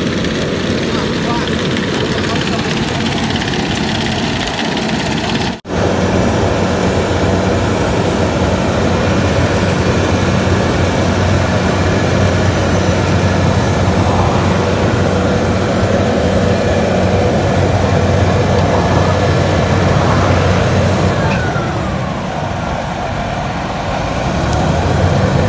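A heavy paving machine's engine rumbles steadily close by.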